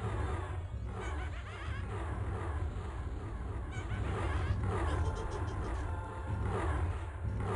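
Magic spells crackle and whoosh.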